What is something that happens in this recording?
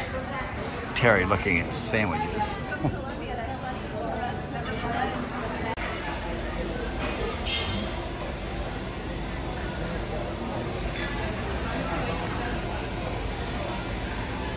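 Men and women chat nearby in a busy, echoing room.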